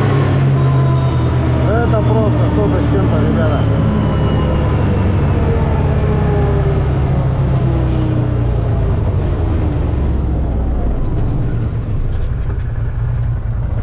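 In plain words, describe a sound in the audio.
Tyres roll on tarmac with a steady rush.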